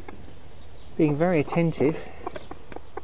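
A hen clucks loudly up close.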